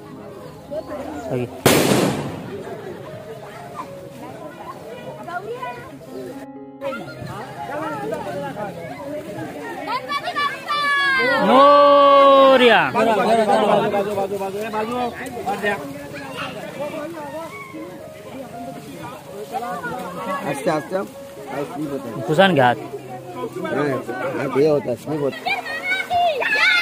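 A crowd of men and women talk nearby, outdoors.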